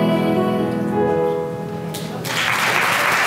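A piano plays along with a choir.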